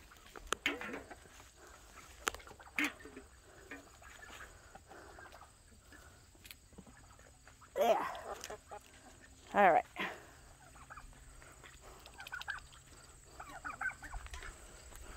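Hens cluck and squawk nearby.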